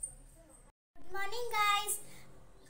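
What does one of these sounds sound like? A young girl speaks with animation close to the microphone.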